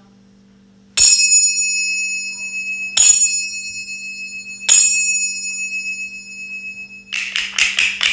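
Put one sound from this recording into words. Small finger cymbals strike and ring out brightly.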